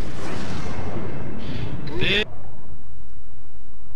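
A bright chime sounds for a level-up in a game.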